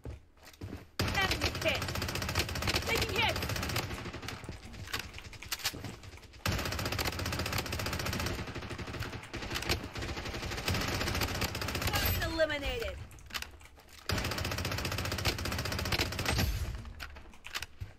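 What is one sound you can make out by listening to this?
Gunfire from a video game rattles in rapid bursts.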